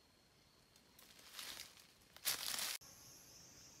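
Footsteps crunch through dry leaves.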